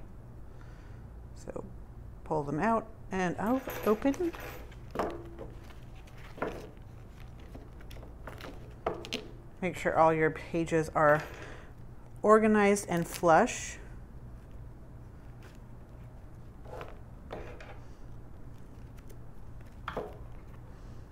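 Metal binder rings click and snap shut.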